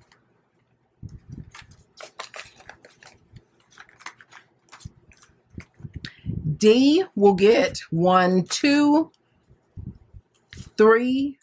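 Paper money rustles and crackles as hands handle it.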